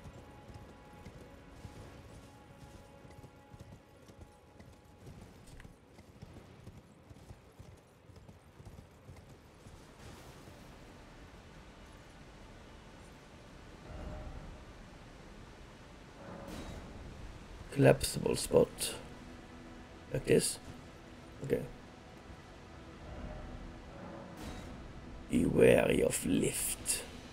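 A horse's hooves clatter on rock.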